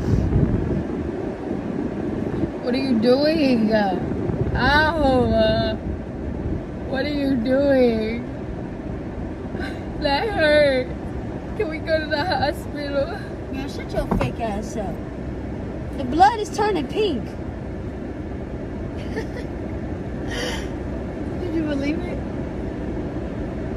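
A young woman laughs and sobs close by.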